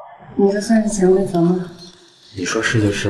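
A young woman speaks with a teasing tone, close by.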